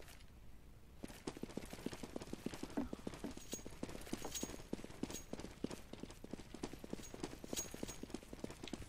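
Quick footsteps run across hard ground.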